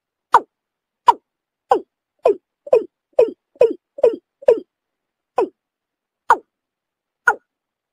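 A bird gives a series of short, sharp calls.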